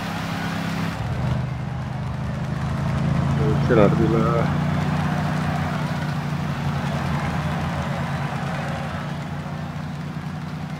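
A motorcycle engine hums steadily nearby.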